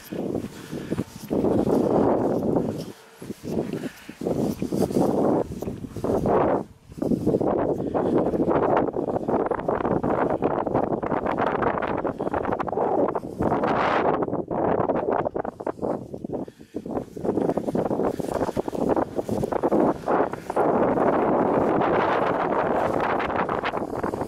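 Strong wind gusts and rumbles against the microphone outdoors.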